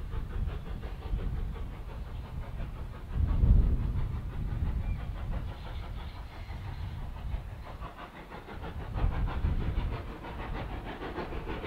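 A steam tank engine chuffs as it works hard beyond the trees.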